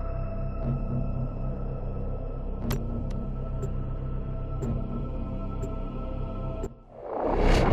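Calm electronic music plays with steady synthesizer chords.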